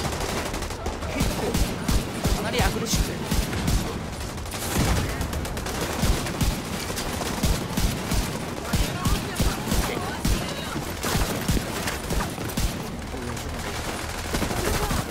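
Rapid gunfire bursts out in quick, loud volleys.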